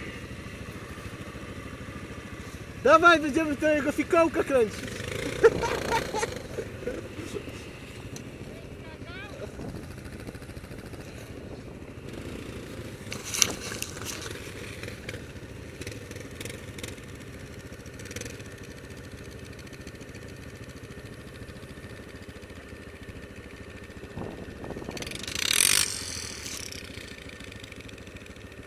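A single-cylinder four-stroke ATV engine revs as the ATV rides through snow.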